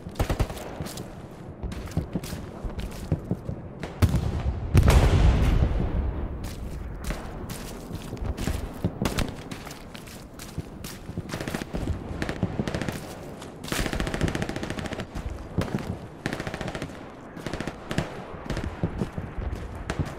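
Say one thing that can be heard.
Footsteps crunch on dry dirt and twigs.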